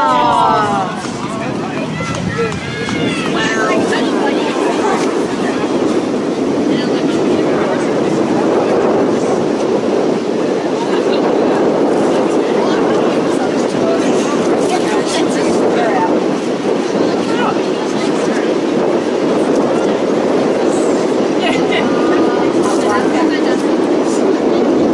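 Players shout to each other across an open field in the distance.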